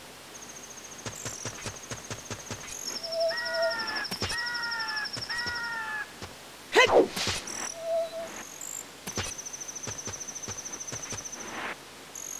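Quick footsteps tap on a stone floor.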